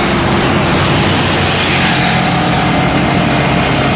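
Rubble and sandbags clatter into a truck bed.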